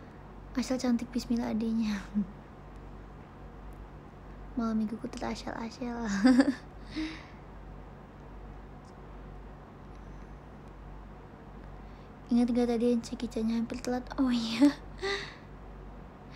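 A young woman talks casually and close to a microphone, in short bursts with pauses.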